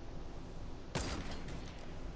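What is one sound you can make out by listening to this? A sniper rifle fires a single shot.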